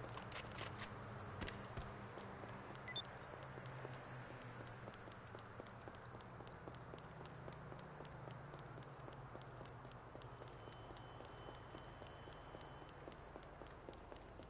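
Footsteps run on concrete.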